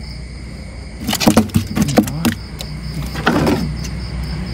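A fish thumps and knocks against a wooden boat.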